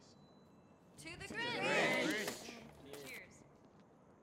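A group of young people cheers together.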